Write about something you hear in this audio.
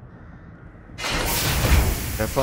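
A heavy door slides open with a loud rush.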